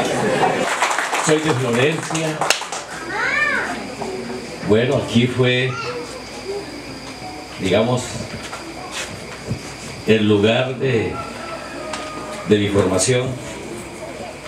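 A man speaks through a loudspeaker in short, spaced phrases.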